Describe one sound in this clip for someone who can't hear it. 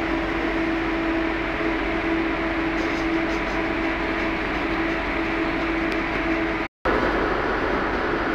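A train rumbles and drones steadily as it travels.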